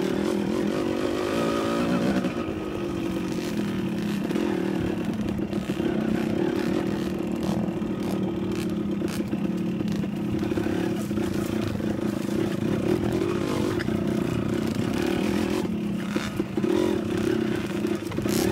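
Dirt bike engines buzz and rev nearby.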